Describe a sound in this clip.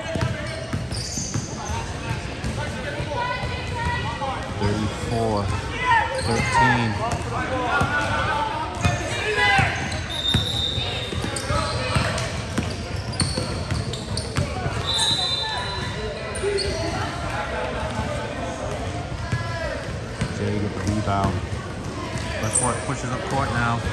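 Young women shout and call out to each other during play, echoing in a large hall.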